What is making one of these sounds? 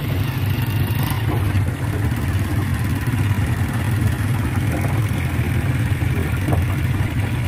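Motorcycle engines hum steadily as two motorbikes ride close by.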